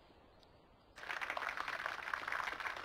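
A crowd applauds, heard through a television speaker.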